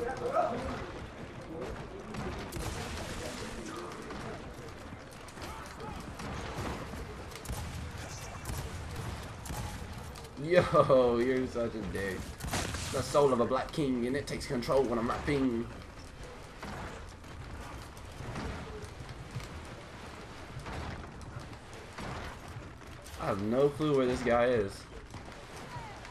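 Heavy footsteps thud on hard ground.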